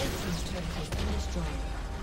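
A tower explodes with a heavy boom.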